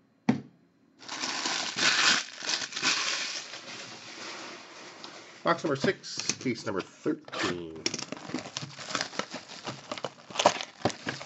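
Plastic wrap crinkles and rustles as hands handle a wrapped box.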